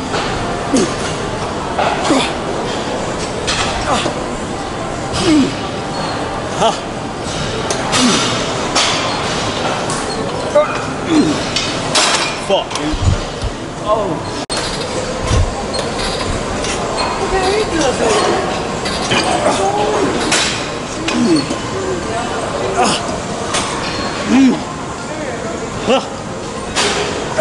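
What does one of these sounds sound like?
Weight machine plates clank.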